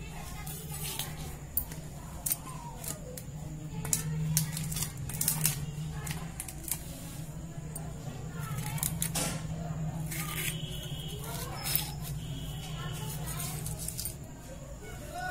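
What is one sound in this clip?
A blade scrapes and peels the skin of a cucumber.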